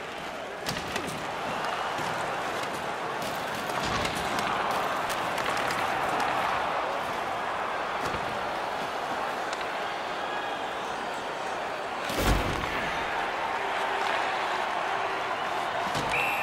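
Hockey sticks click sharply against a puck.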